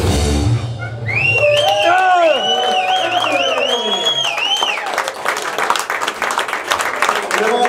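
A band plays loud rock music live in a small room.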